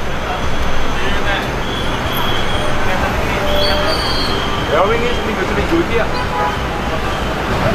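A younger man answers calmly, close by.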